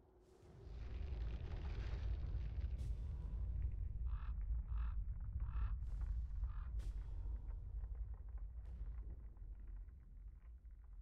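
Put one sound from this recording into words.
A deep rumbling drone plays.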